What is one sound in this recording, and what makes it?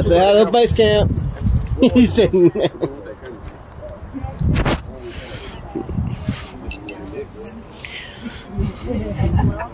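A crowd of men and women talks outdoors nearby.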